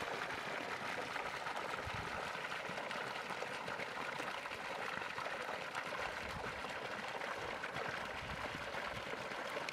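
Water gushes from a pipe and splashes loudly into a stream.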